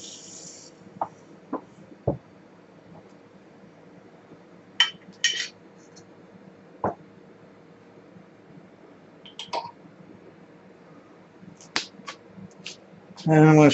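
Glassware clinks and knocks on a hard surface.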